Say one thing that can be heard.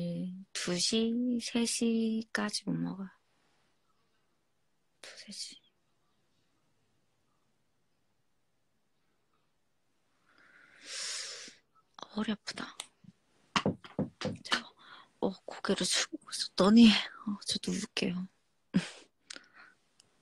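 A young woman speaks softly and close up.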